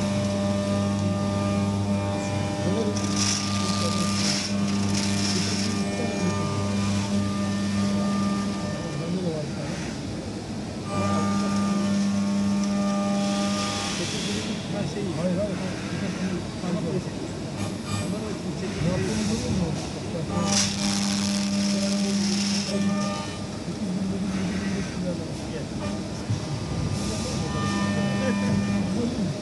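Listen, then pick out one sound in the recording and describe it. A milling machine hums and whines steadily as it cuts metal.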